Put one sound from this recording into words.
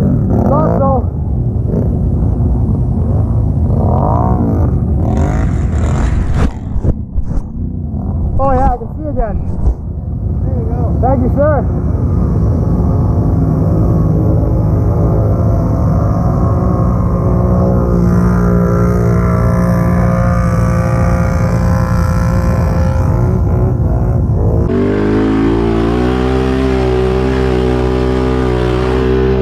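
An all-terrain vehicle's engine idles and revs up and down close by.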